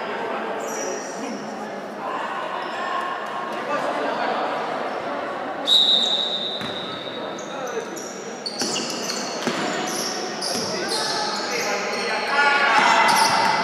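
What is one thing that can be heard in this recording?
Girls shout and call to each other across an echoing hall.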